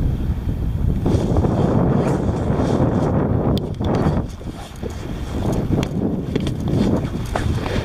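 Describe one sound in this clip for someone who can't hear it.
A kayak paddle splashes through the water.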